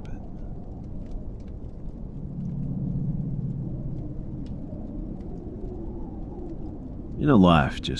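Wind blows steadily outside in a snowstorm.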